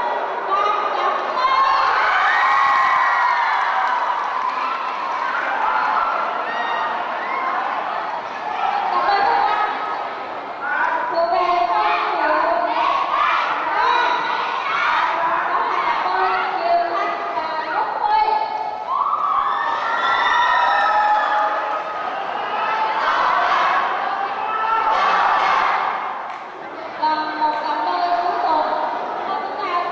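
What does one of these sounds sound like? A young woman speaks with animation over a loudspeaker.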